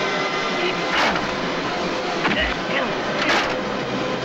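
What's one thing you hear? Punches land with loud, sharp thwacks.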